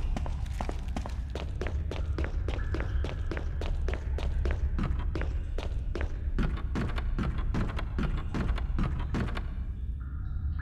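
Footsteps clatter on hard steps at a steady pace.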